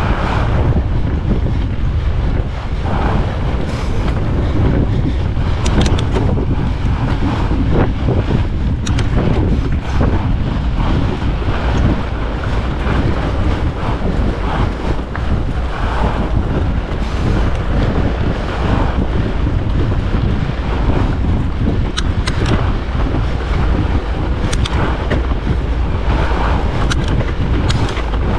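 Wind rumbles loudly across a moving bicycle.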